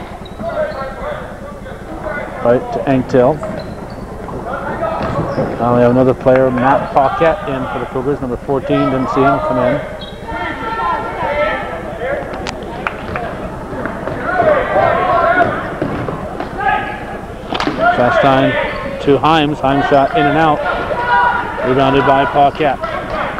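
Young men shout across a large echoing gym.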